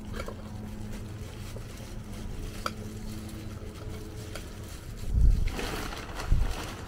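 Plastic gloves crinkle as hands handle a potted plant.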